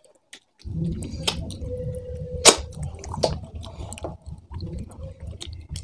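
Fingers squelch and scrape through food on a plate.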